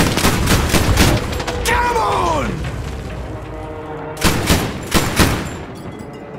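An anti-aircraft gun fires bursts of heavy shots.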